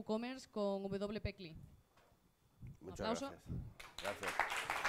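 A young woman speaks through a microphone.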